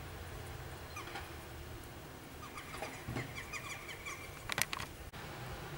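Jackdaws call with short, sharp chirps outdoors.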